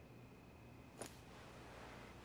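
A clay cup is set down on a table.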